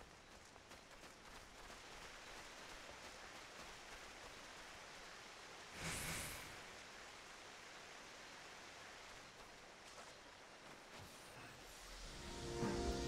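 A stream of water flows and babbles steadily.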